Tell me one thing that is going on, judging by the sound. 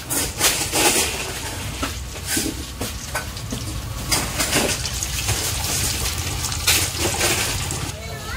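An egg sizzles and crackles in hot oil.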